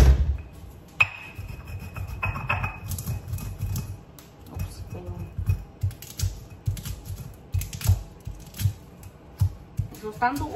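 A stone pestle grinds and knocks in a stone mortar.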